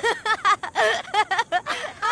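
Another young man groans and laughs breathlessly.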